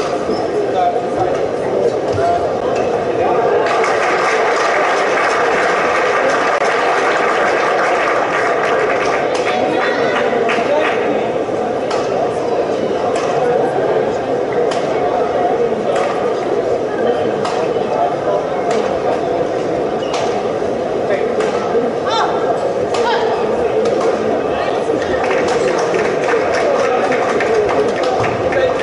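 A large indoor crowd murmurs and cheers, echoing in a big hall.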